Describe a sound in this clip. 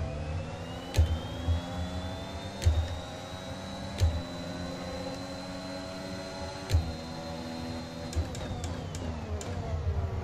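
Gear changes crack sharply every second or two.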